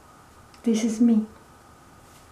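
A middle-aged woman speaks briefly and calmly close by.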